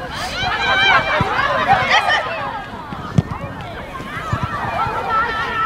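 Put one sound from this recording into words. Young female players shout and call out across an open field.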